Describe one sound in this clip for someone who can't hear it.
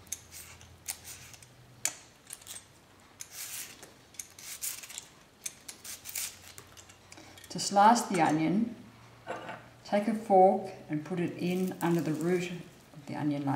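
A peeler scrapes the dry skin off an onion in short strokes.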